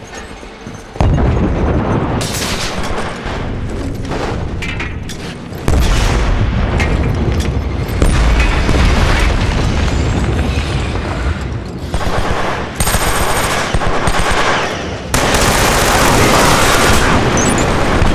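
Guns fire in loud rapid bursts.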